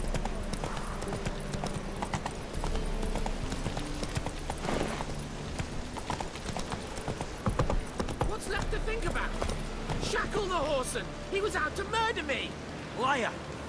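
A horse's hooves clop on cobblestones at a walk.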